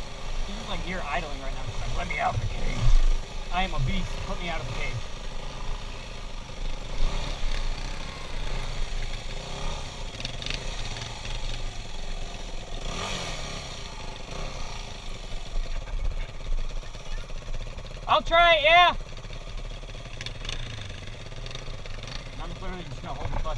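A motorbike engine runs and revs close by.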